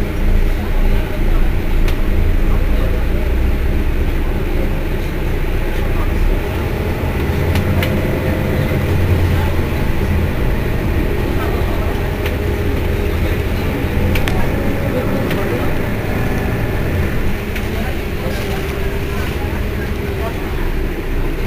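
A bus engine idles with a low, steady rumble close by.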